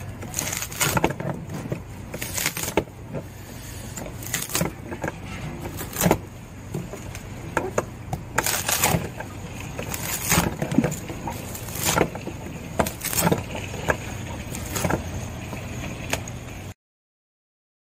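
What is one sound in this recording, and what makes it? A wooden mallet knocks on wood.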